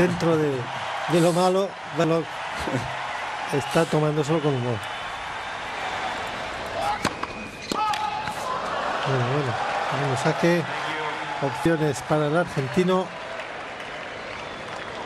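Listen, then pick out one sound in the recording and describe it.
A crowd applauds and murmurs in a large open arena.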